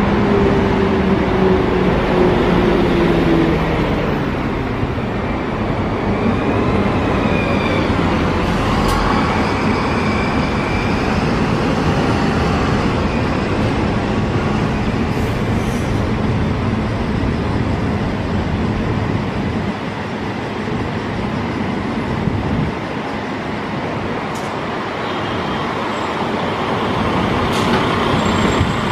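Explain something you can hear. Bus engines hum steadily in the open air.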